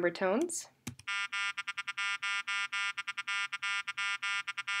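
A buzzier, richer tone plays in short and long pulses.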